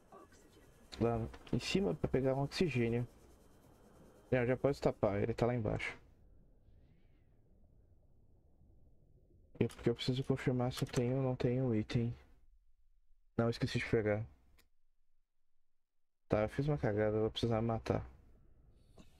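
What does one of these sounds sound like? A young man talks with animation into a close microphone.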